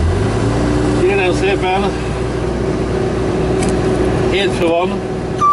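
A man talks briefly nearby over the engine.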